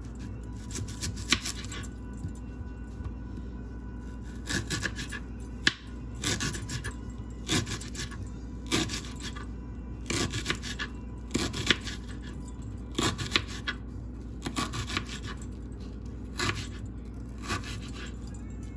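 A kitchen knife slices through an onion.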